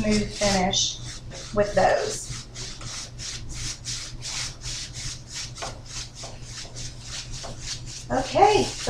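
A brush scrubs rapidly against a metal tub in quick, even strokes.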